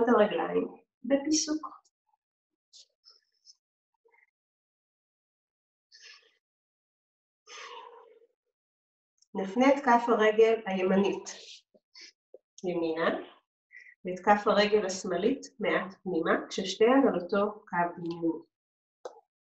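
A woman speaks calmly, close to the microphone, with pauses.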